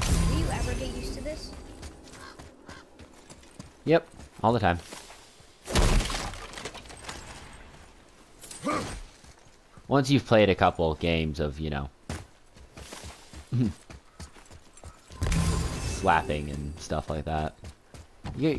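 Heavy footsteps thud on grass and dirt.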